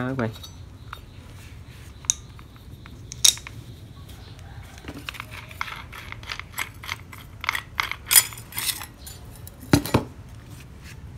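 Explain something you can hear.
Metal parts click and clink as they are handled.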